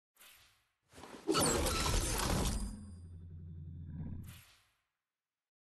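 A glider item whooshes loudly and hums as it is previewed.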